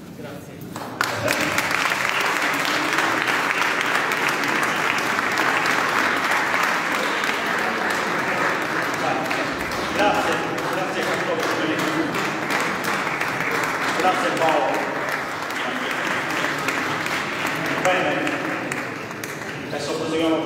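An audience claps loudly in a large echoing hall.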